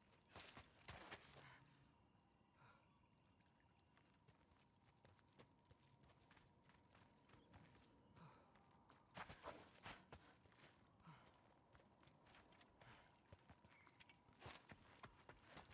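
Footsteps crunch and rustle through dry grass and undergrowth.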